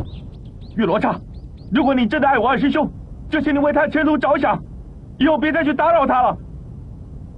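A man speaks in a strained, pleading voice close by.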